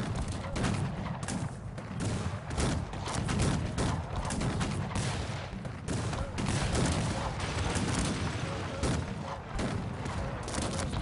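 Cannons fire and explosions boom in a battle.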